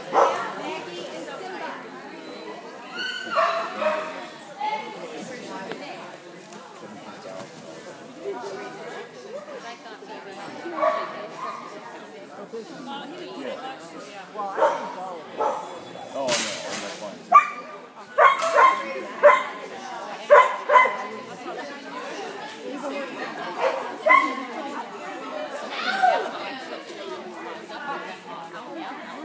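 A woman calls out and gives commands to a dog in a large echoing hall.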